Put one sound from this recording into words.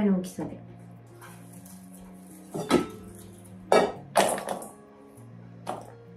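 A metal bowl clanks.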